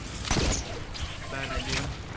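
A pickaxe strikes with sharp thuds.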